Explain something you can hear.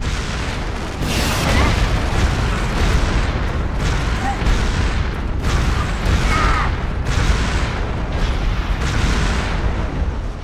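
A jetpack roars with a rushing blast.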